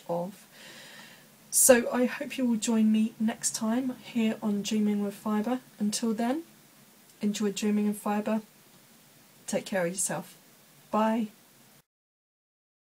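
A woman talks calmly and close up to a microphone.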